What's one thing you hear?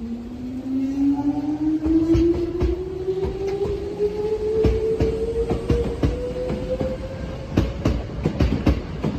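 Train wheels clack over rail joints, faster and faster.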